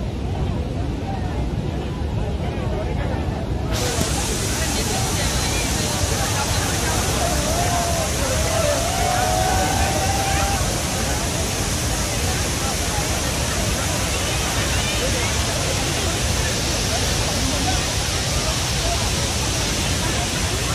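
A crowd of men and women chatter and call out nearby.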